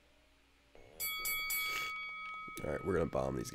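Electronic game sound effects chime.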